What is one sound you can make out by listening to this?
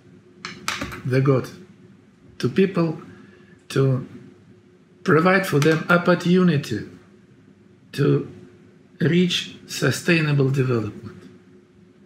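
An elderly man speaks with animation in short bursts over an online call.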